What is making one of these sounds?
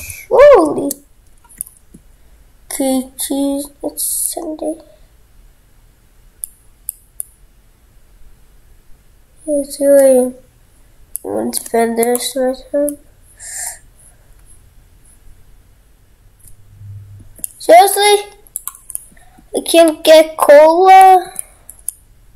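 A young boy talks close to a microphone in short bursts.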